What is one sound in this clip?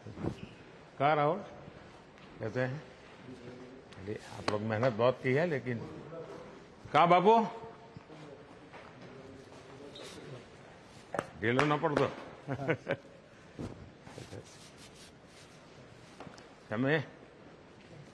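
An elderly man speaks calmly in short phrases, close by.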